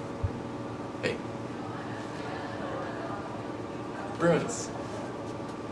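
A young man speaks briefly and cheerfully nearby.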